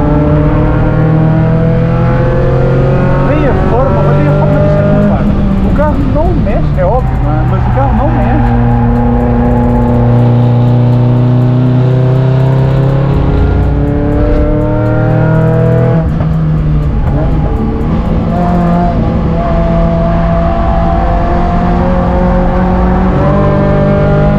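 A car engine roars loudly from inside the cabin, its pitch rising through each gear and dropping at gear changes.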